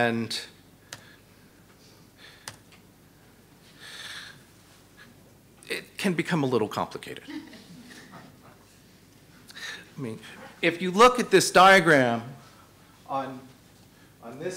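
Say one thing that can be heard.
A middle-aged man speaks calmly into a microphone in bursts with long pauses.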